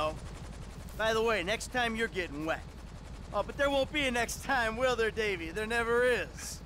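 A man speaks in a gruff voice.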